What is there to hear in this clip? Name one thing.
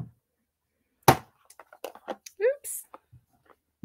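A small plastic bottle is set down with a soft knock.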